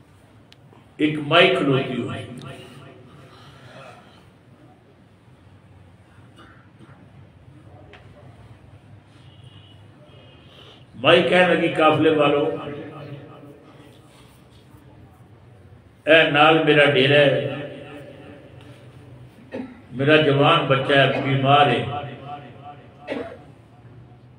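An elderly man speaks emotionally into a microphone in bursts, with long pauses, in an echoing room.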